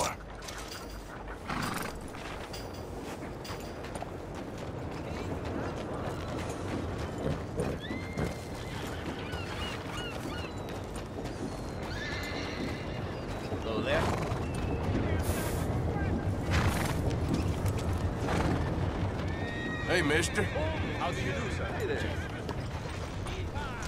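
Horse hooves clop steadily on a dirt road.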